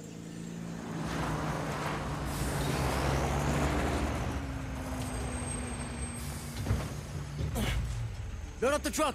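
A truck engine rumbles and revs nearby.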